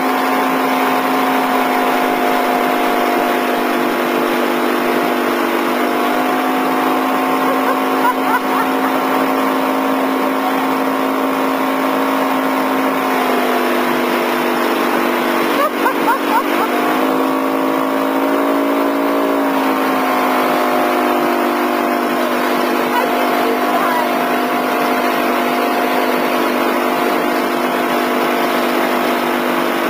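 Water splashes and rushes in the boat's wake.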